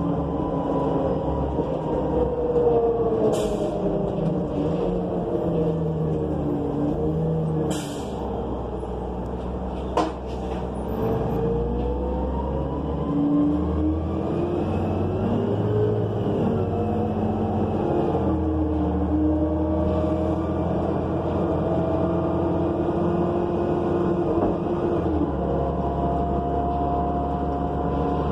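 A bus engine hums and whines steadily, changing pitch as the bus speeds up and slows.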